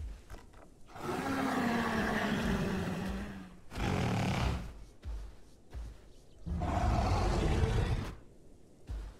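A large creature bellows loudly.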